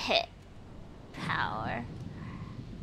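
A young woman squeals excitedly into a microphone.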